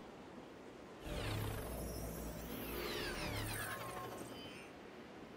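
Sparkling effects crackle and shimmer.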